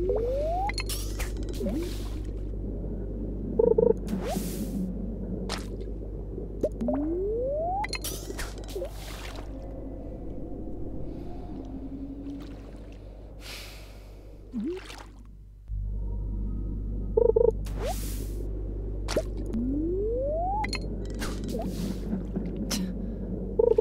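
A fishing bobber plops into the water.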